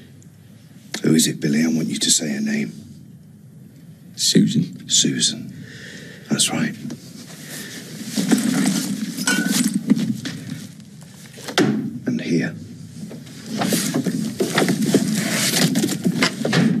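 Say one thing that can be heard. A middle-aged man speaks tensely close by.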